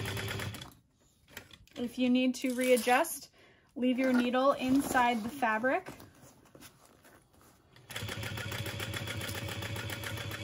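A sewing machine runs with a fast, steady stitching rattle.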